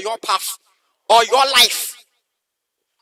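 A man speaks loudly through a microphone over an online call.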